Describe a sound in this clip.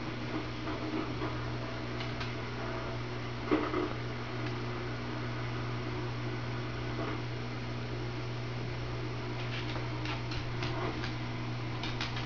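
Paws tap and skitter on a wooden floor.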